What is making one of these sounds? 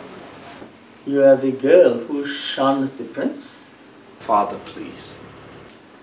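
An elderly man speaks slowly and with feeling, close by.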